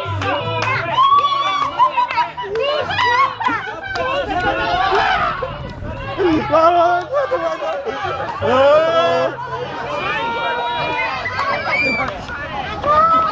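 A group of men shout and cheer outdoors.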